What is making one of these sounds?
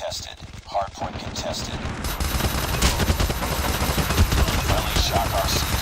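A rifle fires repeated shots.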